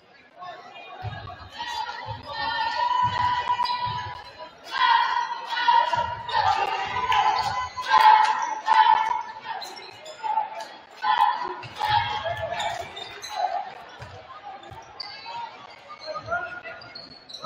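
A basketball is dribbled on a hardwood court.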